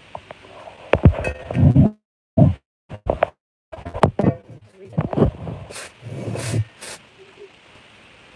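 Fabric rubs and rustles against the microphone.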